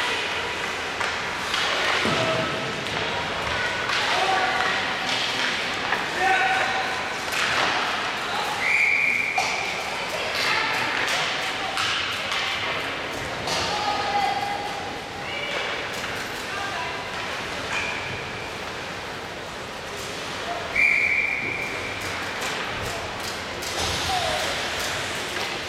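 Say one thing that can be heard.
Ice skates scrape and hiss across the ice in a large echoing hall.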